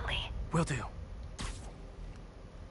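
A web line shoots out with a quick sharp swish.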